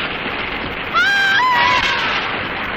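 A monster lets out a loud, shrieking roar.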